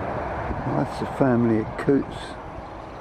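A duck calls briefly on the water.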